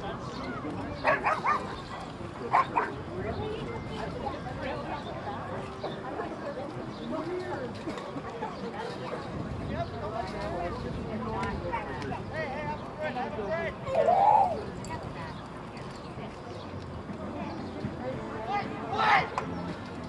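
Young men shout to each other across an open field.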